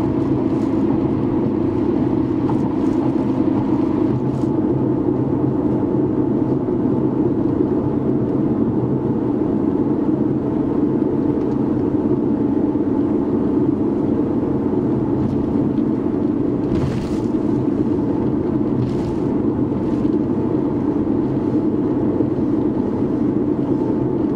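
A car's engine and tyres hum steadily, heard from inside the car.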